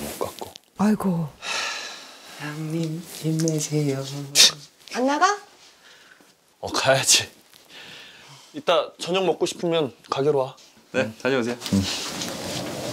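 A second young man speaks and laughs warmly.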